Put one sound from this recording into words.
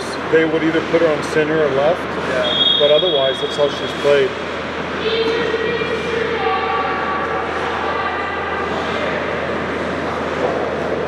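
A man shouts and calls out in a large echoing hall.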